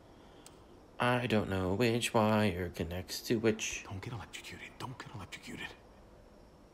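A man mutters nervously to himself, close by.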